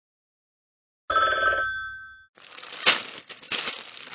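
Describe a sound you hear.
A newspaper rustles as it is lowered.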